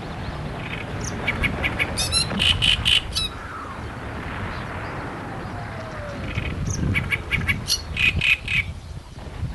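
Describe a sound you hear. A small bird sings a loud, harsh, chattering song close by.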